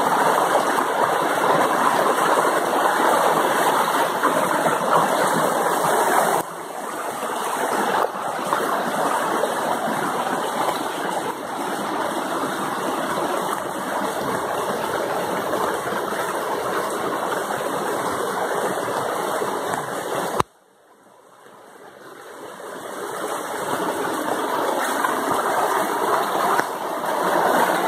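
A shallow stream rushes over rocks.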